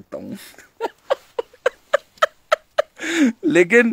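A young man laughs loudly in rhythmic bursts close to the microphone.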